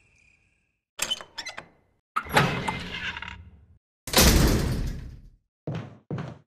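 A heavy metal gate creaks open and clangs shut.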